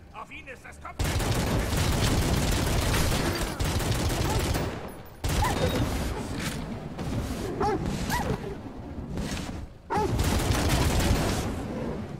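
Guns fire in loud, rapid bursts.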